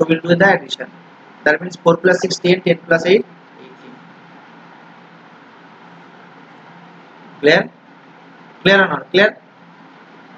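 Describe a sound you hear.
A young man explains calmly into a close microphone, with pauses.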